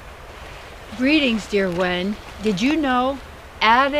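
An older woman speaks calmly and clearly close by, outdoors.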